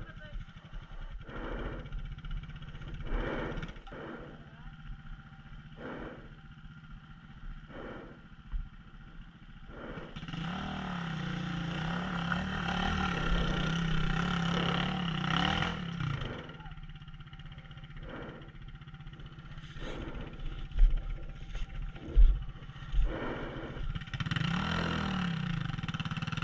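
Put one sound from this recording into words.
A dirt bike engine idles and revs nearby.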